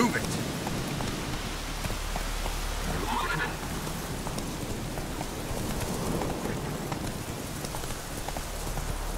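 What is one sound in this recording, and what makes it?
A horse's hooves thud steadily on a dirt path.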